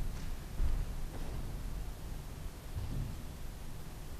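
A man lightly knocks objects on a table.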